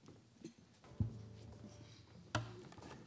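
A small band of strummed string instruments starts to play in a large hall.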